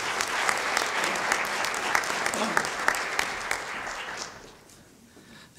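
An audience applauds in a large hall and the clapping fades.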